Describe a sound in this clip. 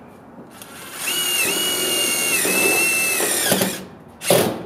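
A cordless drill whirs as it drives into metal.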